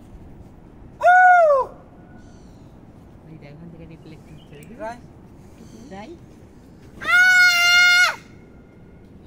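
A man shouts long, drawn-out calls outdoors.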